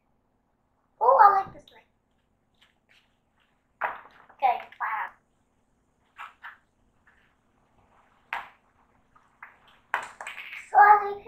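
A young girl speaks calmly close by.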